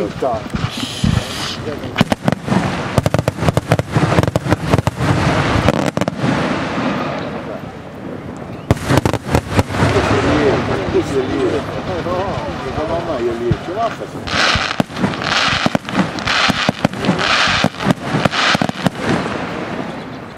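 Fireworks burst with loud booms.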